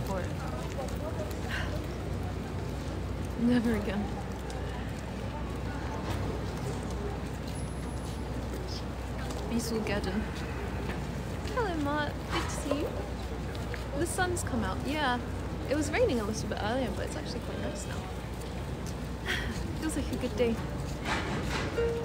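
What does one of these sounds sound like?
A young woman speaks softly and warmly, close to the microphone.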